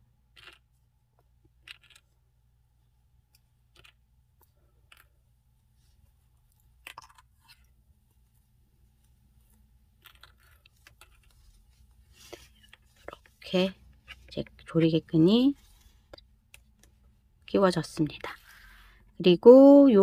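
Hands rustle and handle a fluffy crocheted bag.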